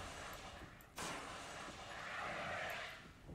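A fire extinguisher sprays with a steady hiss.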